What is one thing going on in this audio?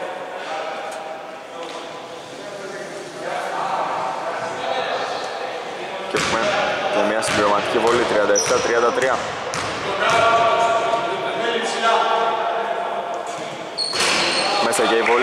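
Men shout and call out in a large echoing gym.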